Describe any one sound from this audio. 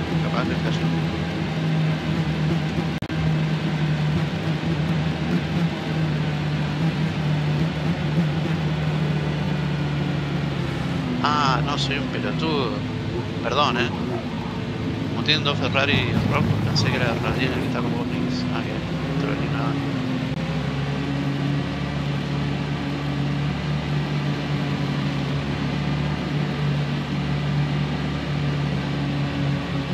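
Racing car engines drone steadily at high speed.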